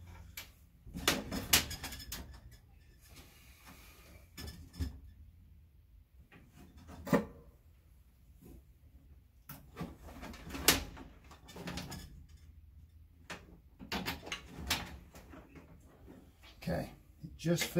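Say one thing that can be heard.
A metal tool taps and knocks against sheet metal.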